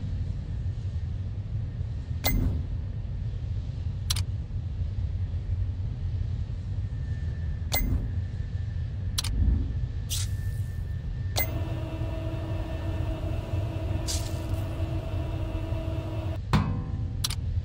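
Metal gears turn with a mechanical whir and clicks.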